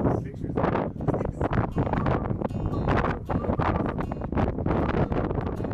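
An acoustic guitar is strummed briskly.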